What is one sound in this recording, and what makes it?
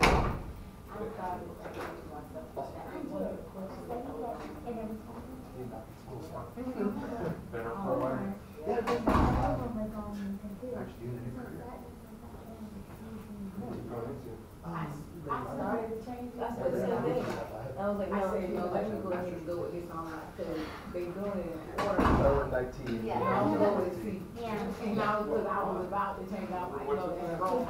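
A man speaks at a distance in an echoing room.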